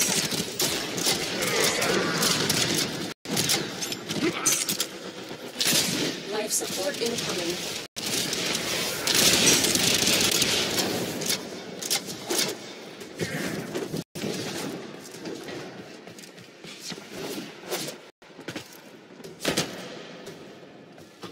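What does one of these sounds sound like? Guns fire in rapid bursts amid loud clattering combat noise.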